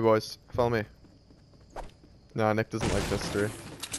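Footsteps run across wooden planks.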